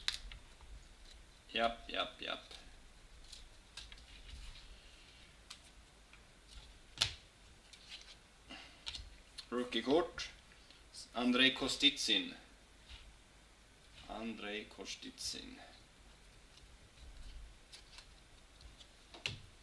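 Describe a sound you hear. Stiff trading cards softly slide and click against one another as they are shuffled by hand.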